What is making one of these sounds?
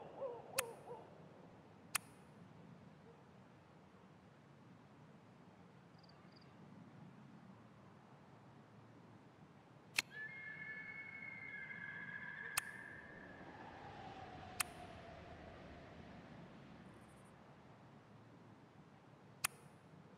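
Short sharp interface clicks sound now and then.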